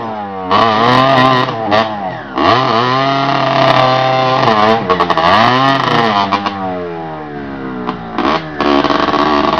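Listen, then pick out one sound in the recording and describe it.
A two-stroke dirt bike revs hard.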